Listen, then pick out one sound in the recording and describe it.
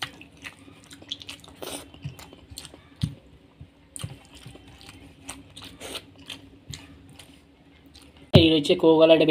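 A man chews food noisily and close up.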